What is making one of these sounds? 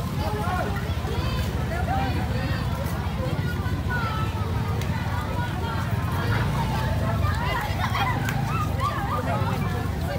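Children talk and call out as they walk.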